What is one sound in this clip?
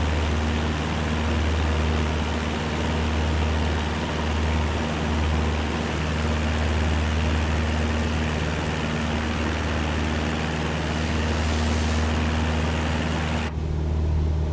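Wind rushes loudly past a small plane.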